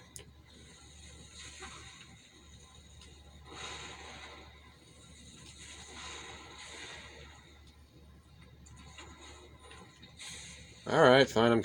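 Fire magic whooshes and crackles in bursts from a television speaker.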